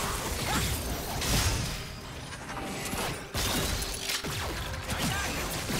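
Magic spells whoosh and crackle in a video game fight.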